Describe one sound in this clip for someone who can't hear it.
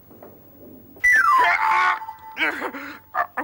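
A man shouts loudly and excitedly.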